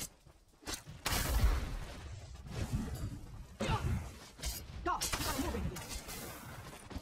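A fiery blast bursts with a loud roaring whoosh.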